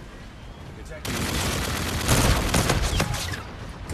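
Rapid gunfire bursts close by.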